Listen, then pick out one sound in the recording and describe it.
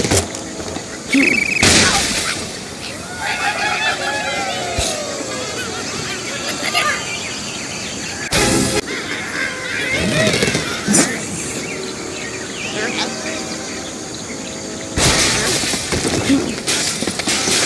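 Cartoon game sound effects play as ice and wooden blocks crash and shatter.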